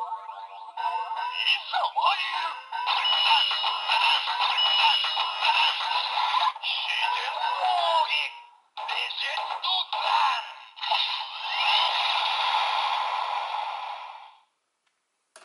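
A toy sword plays loud electronic music and sound effects.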